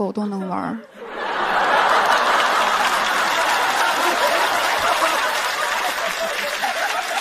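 An audience laughs and claps in a large hall.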